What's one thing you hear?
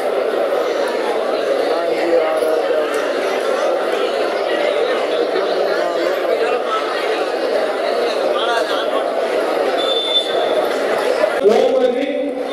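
A large crowd murmurs and chatters.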